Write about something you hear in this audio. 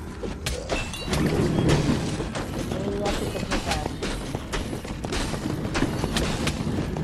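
Weapons clash and strike enemies in rapid hits.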